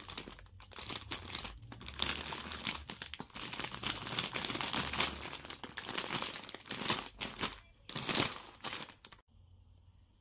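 Plastic noodle packets crinkle and rustle up close.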